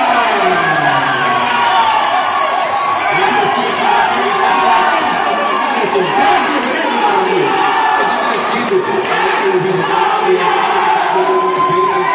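A large crowd of young men and women cheers and chants loudly.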